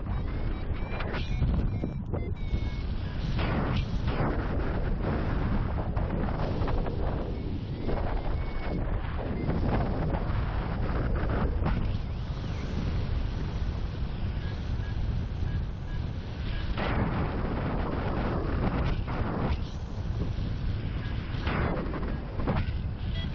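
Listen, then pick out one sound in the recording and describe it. Strong wind roars and buffets constantly, as if in flight high outdoors.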